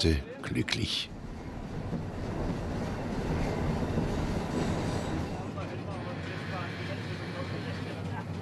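A steam train rumbles and clatters along the tracks.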